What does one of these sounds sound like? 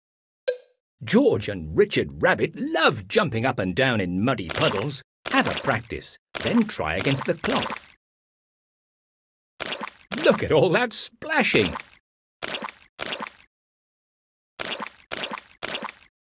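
Mud splashes as small feet jump into puddles.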